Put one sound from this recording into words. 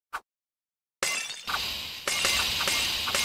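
Glass bottles shatter and liquid splashes.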